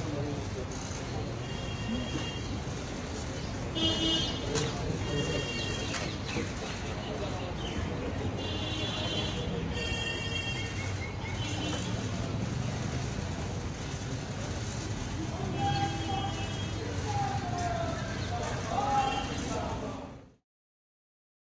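A crowd murmurs softly outdoors.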